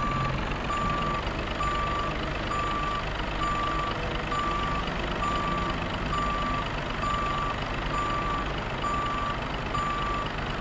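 A reversing alarm beeps at a steady, even pace.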